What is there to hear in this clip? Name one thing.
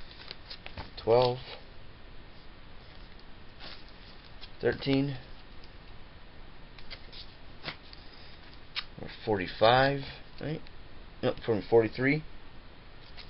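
A man speaks calmly close to the microphone, in short bursts.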